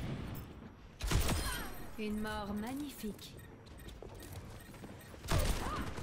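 Loud gunshots crack with a short ringing echo.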